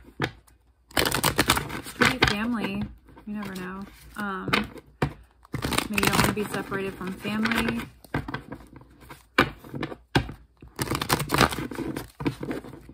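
Playing cards riffle and shuffle with quick flutters.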